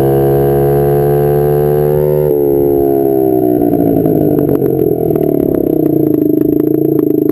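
A motorcycle engine roars close by, its pitch rising, then dropping.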